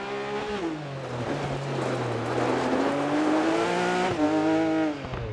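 Gravel sprays and crunches under sliding tyres.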